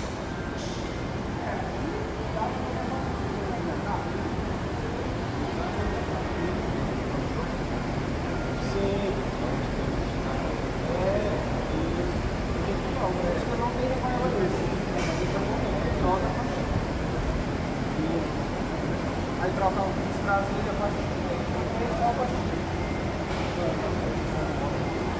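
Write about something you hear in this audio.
A man talks calmly and explains, close by.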